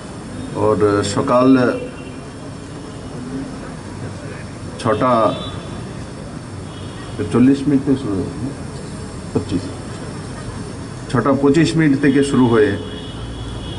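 A man speaks forcefully into a microphone outdoors, in bursts with pauses, his voice echoing over loudspeakers.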